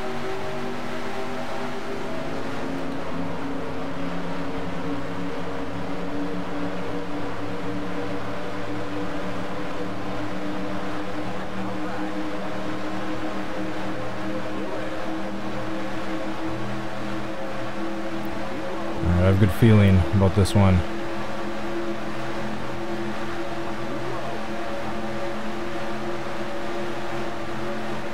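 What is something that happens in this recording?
Racing car engines drone steadily at high speed.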